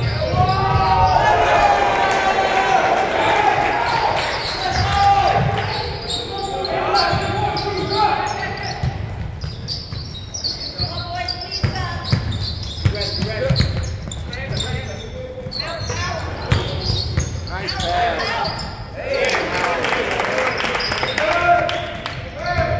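Young players call out and shout in a large echoing hall.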